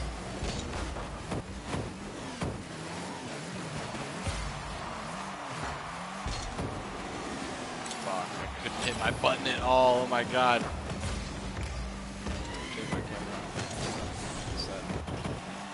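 A ball is struck with loud thuds.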